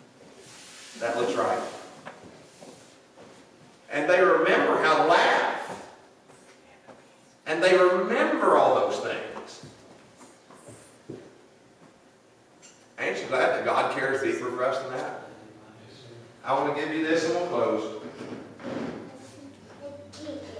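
A middle-aged man preaches through a microphone in bursts, with pauses between phrases.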